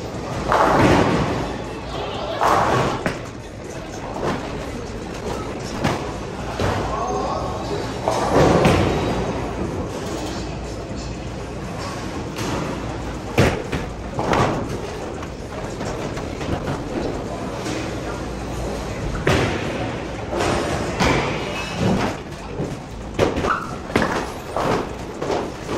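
Bowling balls rumble down lanes and crash into pins in a large echoing hall.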